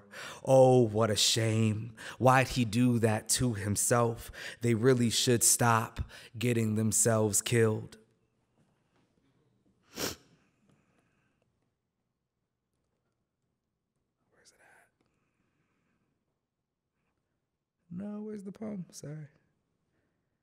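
A young man reads aloud slowly into a microphone.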